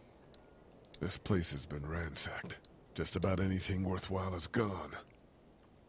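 A man speaks calmly and quietly.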